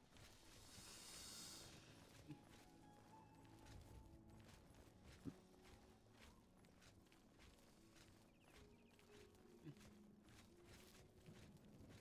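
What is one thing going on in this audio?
Footsteps tap on stone paving at a steady walking pace.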